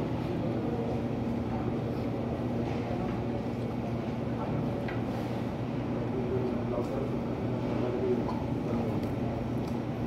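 A man chews and smacks his lips while eating.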